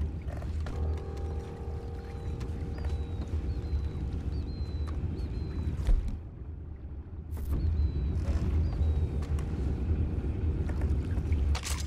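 A low, steady rumble of a boat moving through water fills the air.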